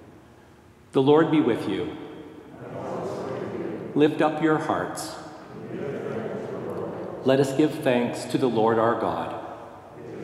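A man chants with a strong echo, as in a large hall.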